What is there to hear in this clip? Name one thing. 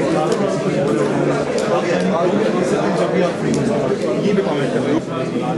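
Several men talk over one another close by.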